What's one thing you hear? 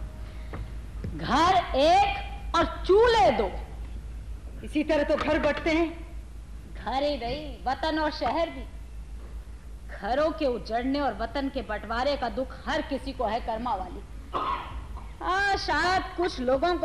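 A young woman speaks with feeling, heard from a distance in a large hall.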